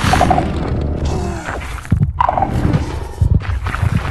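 Heavy blows thud and crash as monsters fight.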